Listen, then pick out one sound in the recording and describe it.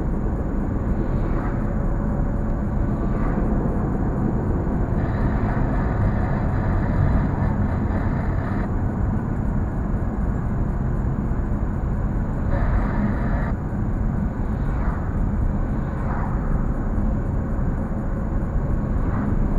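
Tyres rumble on asphalt.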